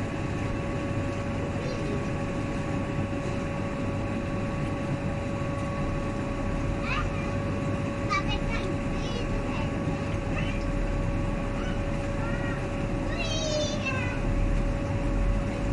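Damp laundry rustles and flaps as it is shaken out and hung up.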